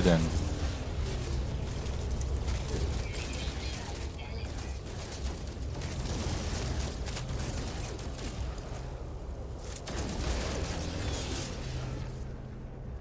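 A gun fires in short bursts.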